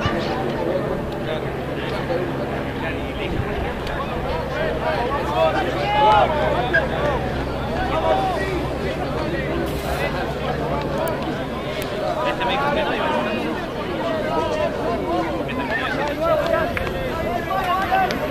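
Players and spectators shout and call out across an open field outdoors.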